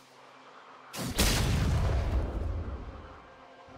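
A fiery blast bursts with a loud roaring whoosh and rumbles away.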